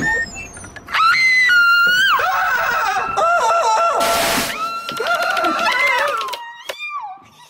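A young man shrieks loudly in a high, wavering voice.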